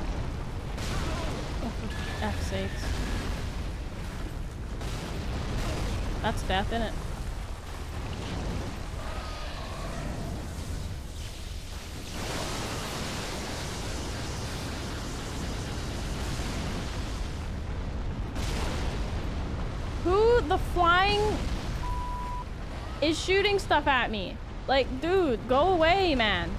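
Heavy blows and magic blasts crash and rumble in a fight.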